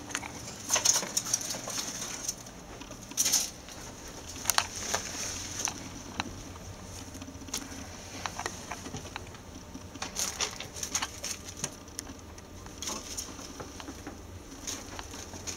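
Small animals scuffle and tumble on a carpet nearby.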